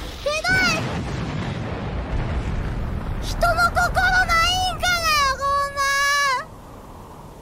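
A young woman speaks in a high, animated voice close to a microphone.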